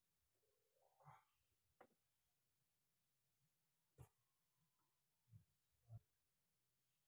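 Soft thumps sound as bodies shift on a padded mat.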